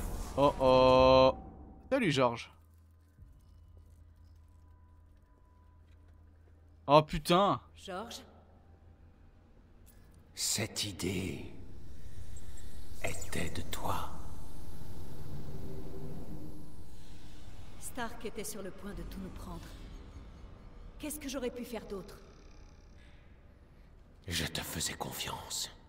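A man speaks in a deep, calm voice.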